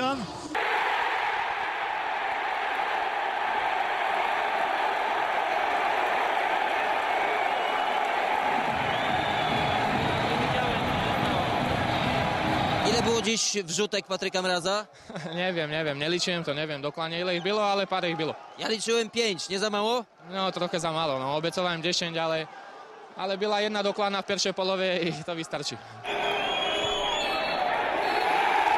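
A stadium crowd cheers and roars loudly.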